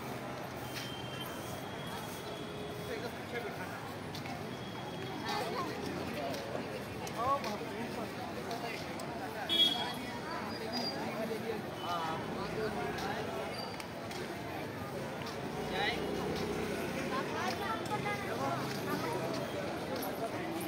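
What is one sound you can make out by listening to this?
A crowd of men and women murmurs and chatters outdoors.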